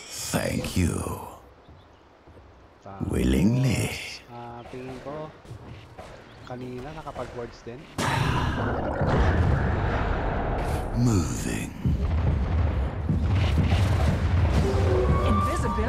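Game sound effects of clashing blows and spells ring out.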